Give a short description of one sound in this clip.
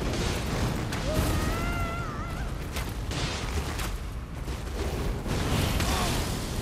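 A sword clashes and slashes in heavy, sudden blows.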